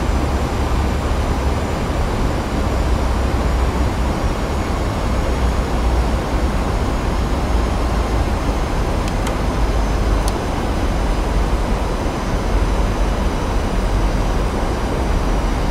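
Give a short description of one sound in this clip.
Air rushes past an airliner cockpit in a low, steady roar.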